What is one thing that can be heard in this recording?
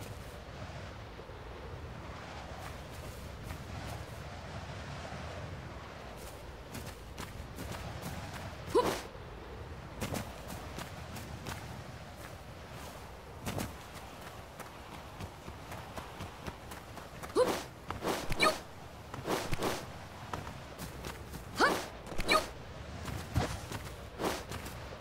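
Footsteps patter quickly over grass and rock.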